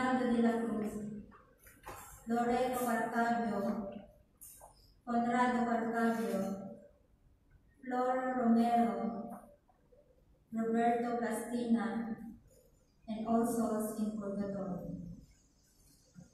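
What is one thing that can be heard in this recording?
A woman sings slow phrases over loudspeakers in a large echoing hall.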